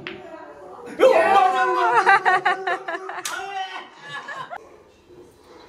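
A group of men cheer and laugh loudly.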